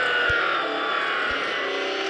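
A tyre screeches on a tight bend.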